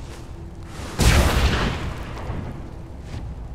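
A magical portal bursts open with a loud whoosh.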